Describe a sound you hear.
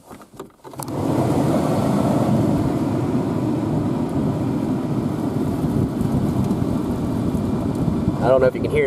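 A car's fan blows air steadily through the dashboard vents.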